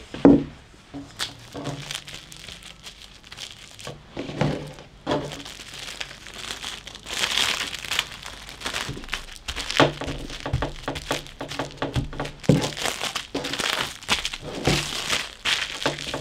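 Plastic wrap crinkles and rustles under hands.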